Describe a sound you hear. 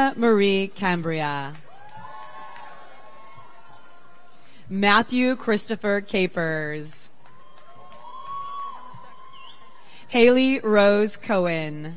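A woman reads out names over a loudspeaker in a large echoing hall.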